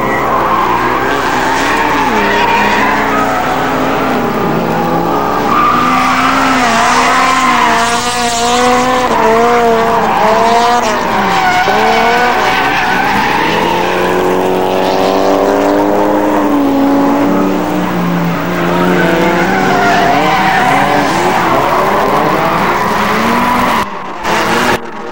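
Car engines rev loudly, rising and falling in pitch as cars slide around a track.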